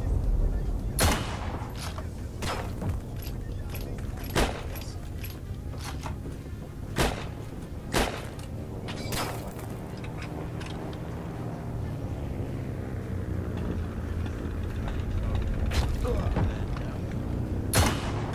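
Rifle shots ring out one at a time, each with a short echoing tail.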